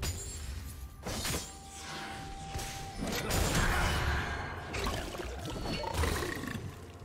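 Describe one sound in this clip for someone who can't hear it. Game weapons strike with sharp hits.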